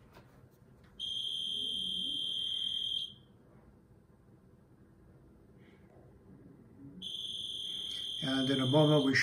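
A modem's speaker gives off a steady high tone.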